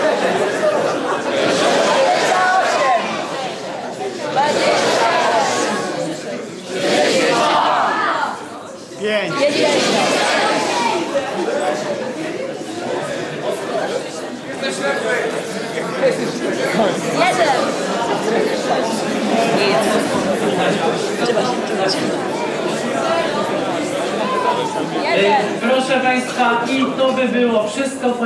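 Young people in the audience chatter and shout excitedly.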